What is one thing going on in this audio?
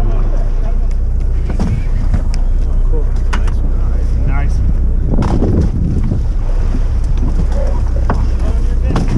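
Waves slap against the side of a boat.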